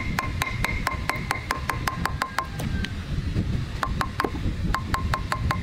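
A hammer taps a metal chisel rapidly and steadily, with a short ringing after each blow.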